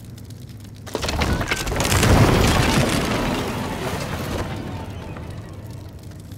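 A loud blast booms and slowly fades.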